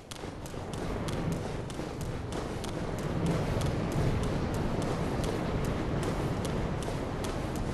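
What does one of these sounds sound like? Wind blows in a low roar outdoors.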